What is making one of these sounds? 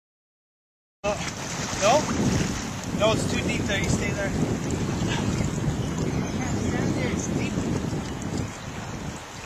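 River water rushes past a boat.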